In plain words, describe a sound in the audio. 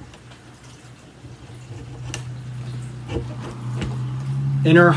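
A plastic vacuum cleaner handle clicks as it is pushed into place.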